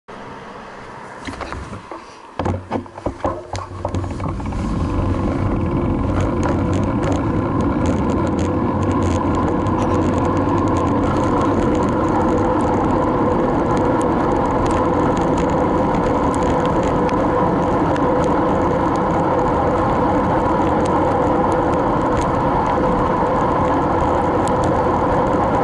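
A motorcycle engine drones steadily as it rides along.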